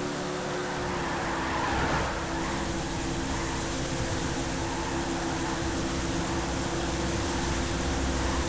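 A stock car scrapes and crashes against a wall.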